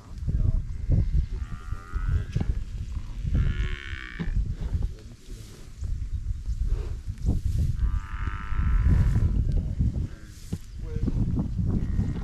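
A buffalo tears and munches grass close by.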